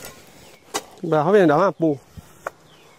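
A man speaks nearby outdoors.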